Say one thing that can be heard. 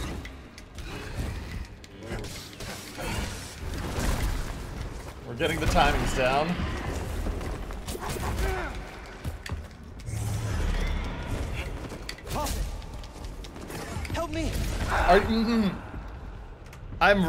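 A lightsaber hums and whooshes through swings.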